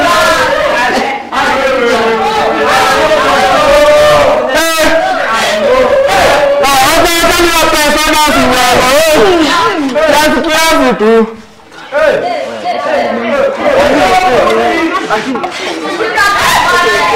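A group of young men and women sing together loudly, close by.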